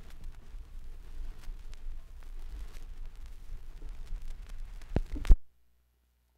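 A vinyl record crackles and hisses softly under the needle.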